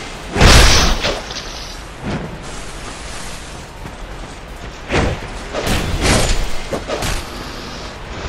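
Sword blows strike and clang in a fight.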